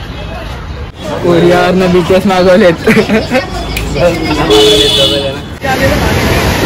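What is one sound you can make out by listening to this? Young men laugh and talk excitedly close by.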